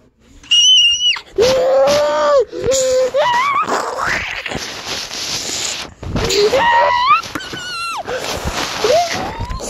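Fingers rub and knock against a microphone up close.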